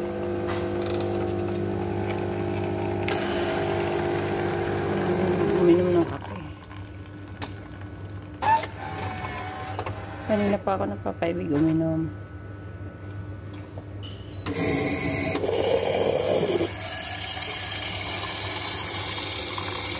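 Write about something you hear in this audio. Coffee pours into a paper cup.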